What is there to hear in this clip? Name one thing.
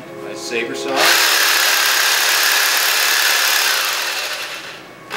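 A power tool whirs loudly and steadily, then winds down.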